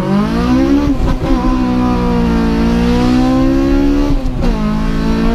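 A car engine's pitch drops suddenly at each gear change.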